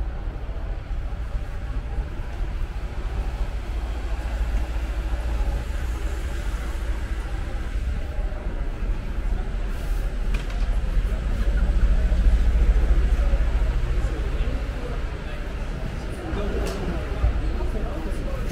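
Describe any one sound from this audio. Street traffic rumbles steadily nearby.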